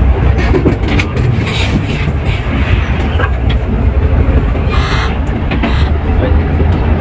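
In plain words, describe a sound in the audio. The bus rattles and creaks over the road.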